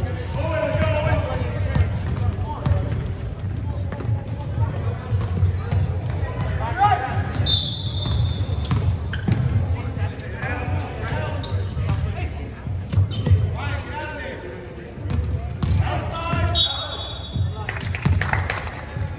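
A basketball bounces on a court floor.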